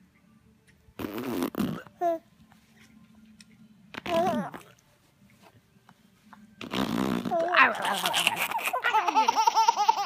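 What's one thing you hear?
A baby giggles and laughs loudly close by.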